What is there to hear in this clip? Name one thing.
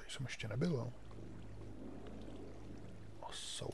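Water trickles and flows nearby.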